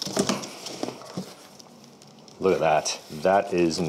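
A cardboard box lid flaps open.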